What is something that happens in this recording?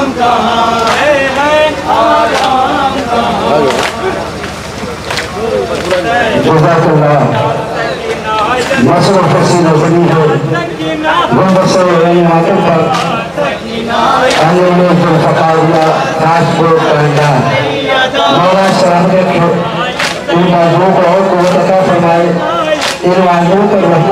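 A group of men chant loudly together outdoors.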